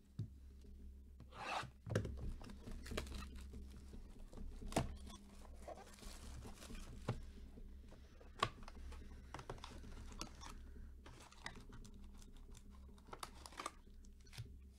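Cardboard scrapes and taps.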